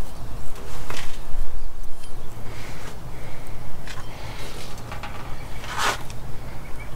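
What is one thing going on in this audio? Metal parts clink as they are handled.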